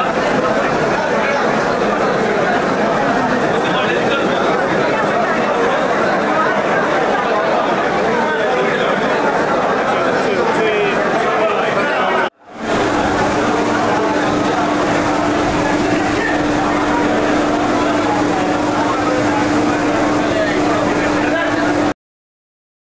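A crowd of men chatters loudly in a large echoing hall.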